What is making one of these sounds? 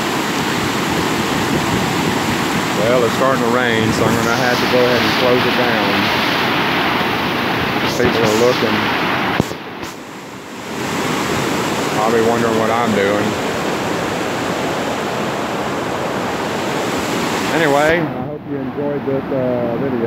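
Floodwater rushes and roars loudly over a road nearby.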